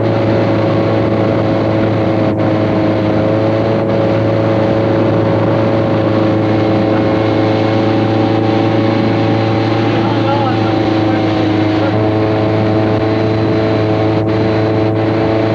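A motorboat engine drones steadily at speed.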